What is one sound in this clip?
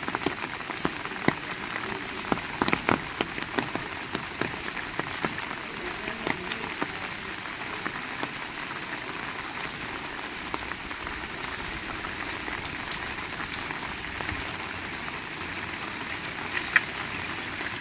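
Water drips and patters onto hard surfaces nearby.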